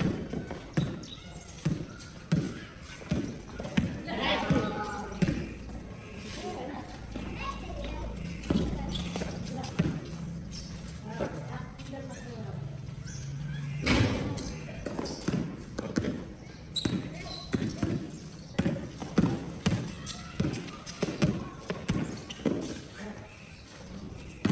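A basketball bounces on hard pavement outdoors.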